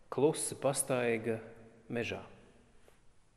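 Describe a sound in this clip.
A man sings in a calm voice through a microphone.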